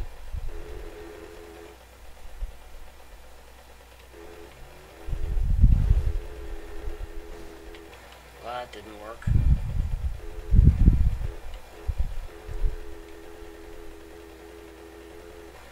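A motorbike engine drones steadily.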